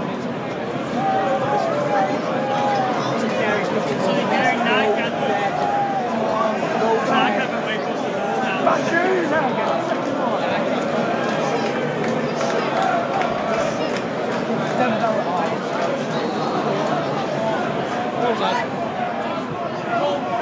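A large stadium crowd sings and chants loudly, echoing around the stands.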